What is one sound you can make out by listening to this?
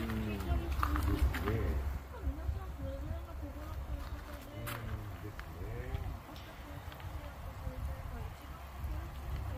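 Water splashes and bubbles as fish churn the surface.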